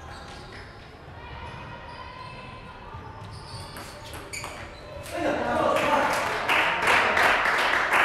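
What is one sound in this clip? A table tennis ball clicks back and forth between paddles and the table in an echoing hall.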